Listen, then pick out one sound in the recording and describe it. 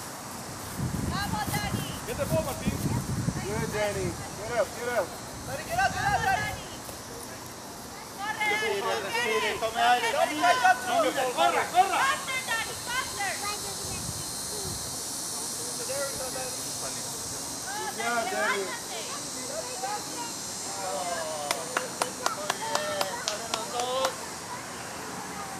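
Young children shout and chatter excitedly outdoors.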